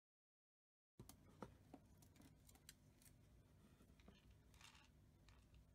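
A small wooden box clicks as a hand handles it.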